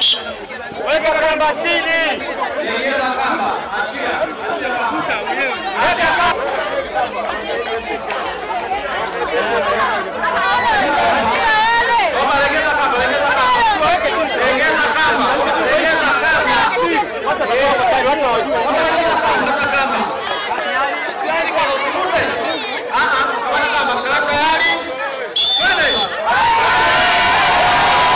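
A crowd of men and women cheers and shouts outdoors.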